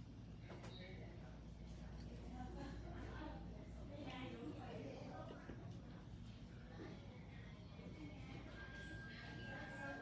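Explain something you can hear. A brush taps softly against a fingernail.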